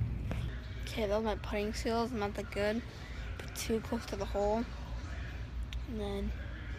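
A young boy talks animatedly close to the microphone.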